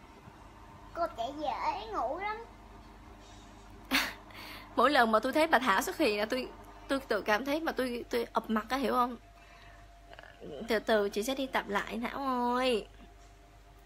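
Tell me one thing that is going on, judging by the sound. A young woman speaks casually and close up, pausing between phrases.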